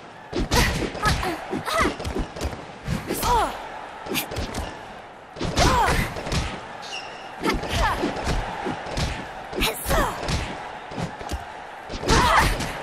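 Boxing gloves thud as punches land, again and again.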